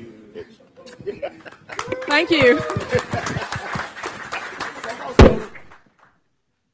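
People clap and cheer.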